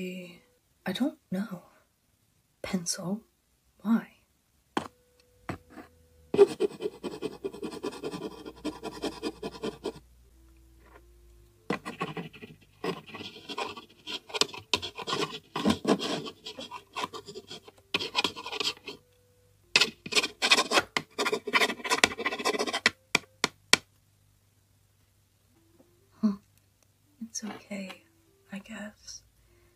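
A young woman speaks hesitantly in a cartoon voice.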